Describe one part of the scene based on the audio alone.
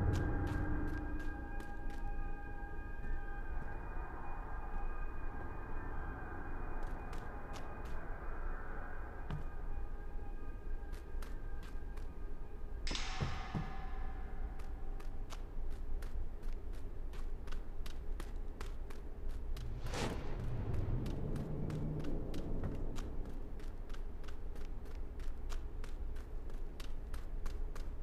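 Footsteps run quickly and steadily across a hard floor.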